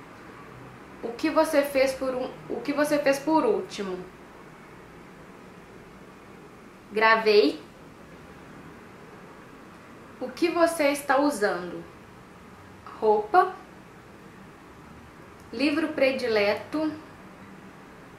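A young woman speaks calmly and close to a microphone, in short bursts with pauses.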